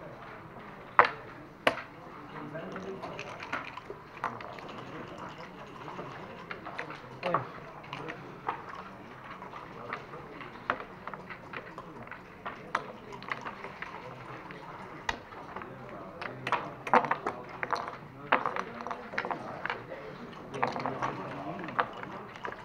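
Backgammon checkers click and clatter on a wooden board.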